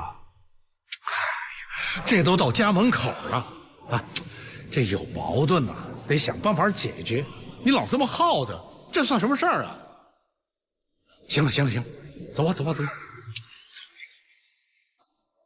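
An older man talks persuasively, close by.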